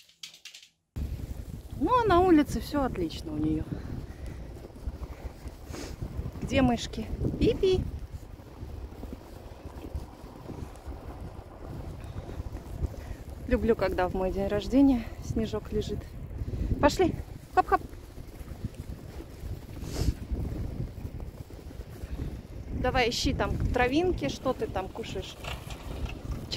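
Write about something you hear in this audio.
A dog runs and trots through crunching snow.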